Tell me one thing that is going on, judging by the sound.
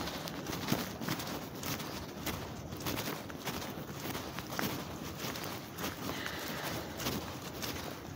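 Light rain patters outdoors.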